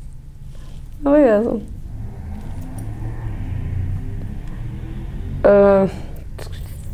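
A young woman speaks briefly into a close microphone.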